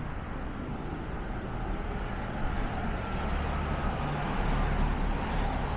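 A car drives up a street and approaches, its engine and tyres growing louder.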